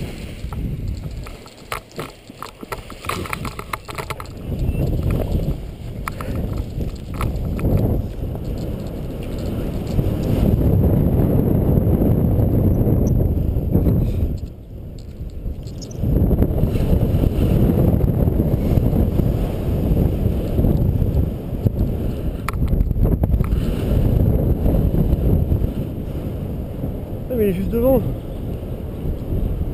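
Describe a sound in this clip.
Wind rushes loudly past the microphone outdoors.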